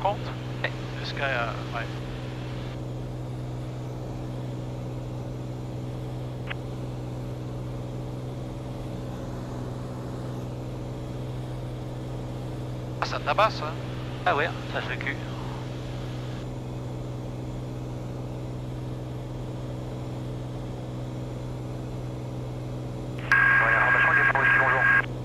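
A small plane's engine drones steadily throughout.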